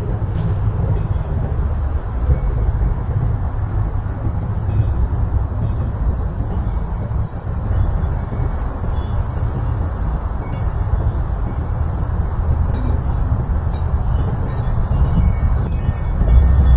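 Hanging decorations flap and rustle in the wind.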